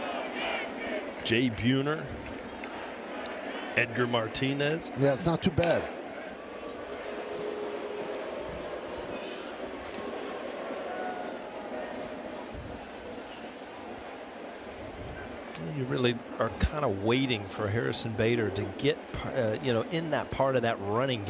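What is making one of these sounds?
A large stadium crowd murmurs steadily in the open air.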